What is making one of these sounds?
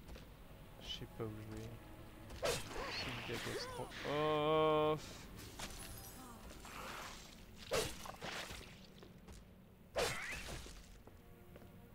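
Sword slashes and blows thud in a fight.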